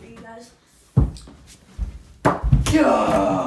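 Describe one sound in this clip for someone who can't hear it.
A small ball bounces off a hoop's backboard and rim.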